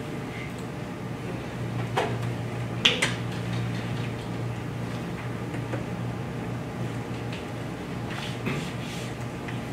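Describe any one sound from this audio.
A man speaks calmly in a room with some echo.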